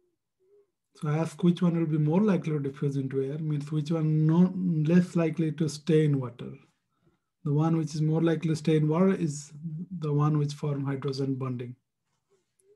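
A young man speaks calmly and clearly through a microphone, as on an online call.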